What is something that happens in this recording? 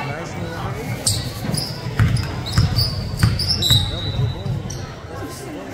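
Sneakers squeak sharply on the gym floor.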